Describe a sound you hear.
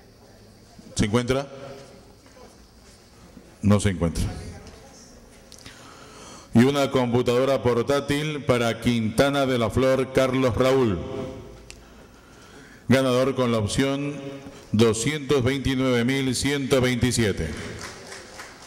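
A man speaks over a loudspeaker in an echoing hall.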